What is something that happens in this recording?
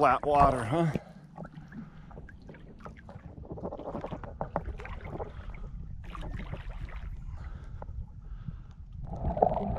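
Water laps softly at the waterline of a small boat.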